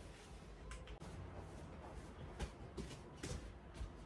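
Footsteps pad softly across the floor.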